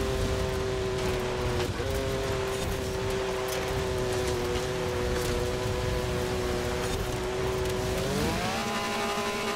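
Tyres rumble over rough dirt.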